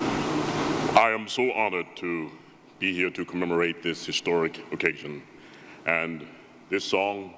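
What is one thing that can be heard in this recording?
A man speaks calmly into a microphone, heard through loudspeakers in a large hall.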